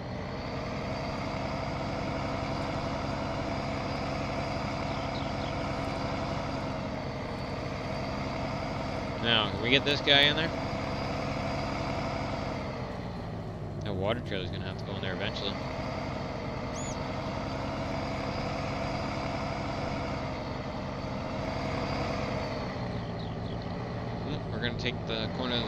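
A truck's diesel engine hums steadily as the truck drives slowly.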